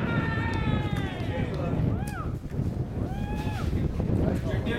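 Young men shout calls across an open field.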